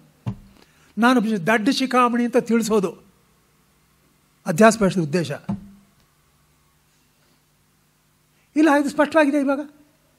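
An elderly man chants in short, steady phrases with pauses between them.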